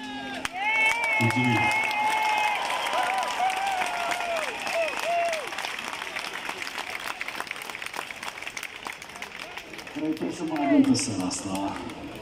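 A crowd cheers and whistles loudly outdoors.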